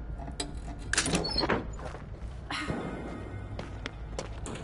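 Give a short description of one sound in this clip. Hands rummage through a wooden chest.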